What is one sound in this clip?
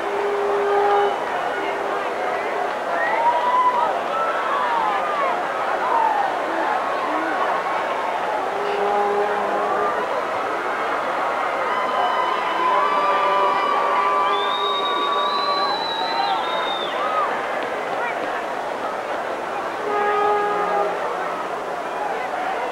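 A large crowd of young people cheers and screams loudly outdoors.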